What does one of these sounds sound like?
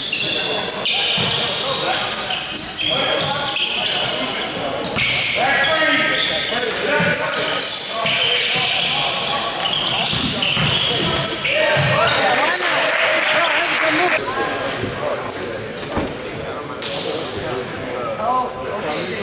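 Young men shout across an echoing gym.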